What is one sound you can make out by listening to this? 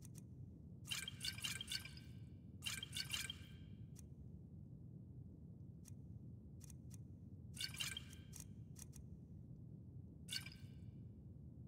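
Glass bottles clink briefly, several times.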